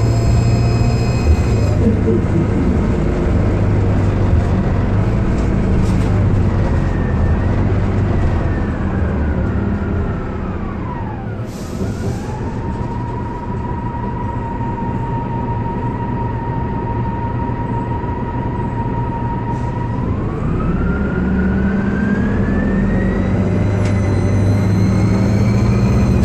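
A bus engine rumbles and drones throughout.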